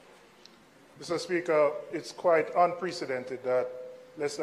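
A man speaks formally into a microphone in a large hall.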